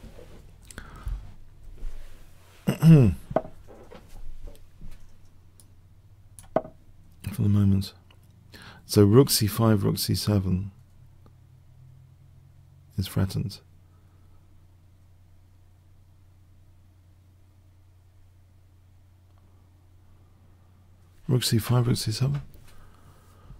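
A middle-aged man talks into a close microphone, thinking aloud with animation.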